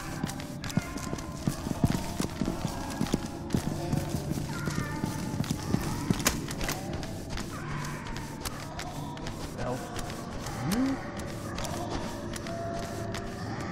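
Footsteps tread on a tiled floor.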